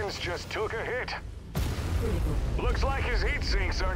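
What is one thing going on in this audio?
Guns fire rapid bursts.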